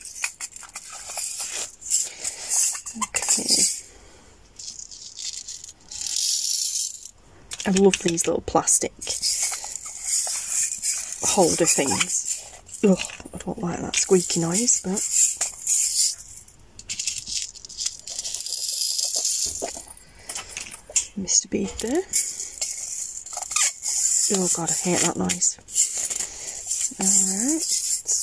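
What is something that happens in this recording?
Small beads rattle inside plastic containers.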